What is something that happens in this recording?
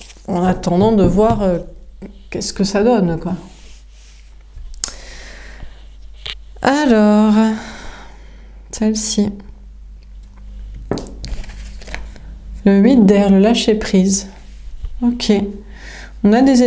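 Cards slide and tap on a cloth-covered table.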